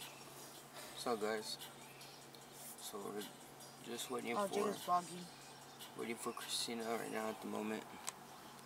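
A young man talks calmly up close.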